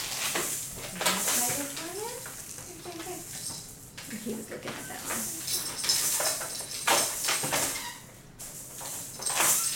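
Plastic toys rattle and clatter as they are set down.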